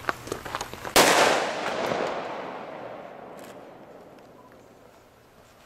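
A pistol fires a single loud shot that echoes and slowly rolls away.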